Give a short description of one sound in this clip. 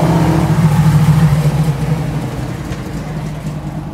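A car engine rumbles loudly as a car drives past.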